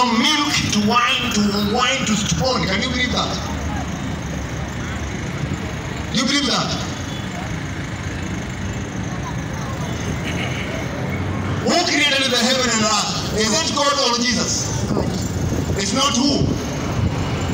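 A man speaks loudly close by, outdoors.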